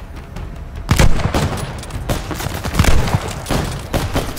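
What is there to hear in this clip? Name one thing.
A rifle's bolt clicks and clacks during a reload.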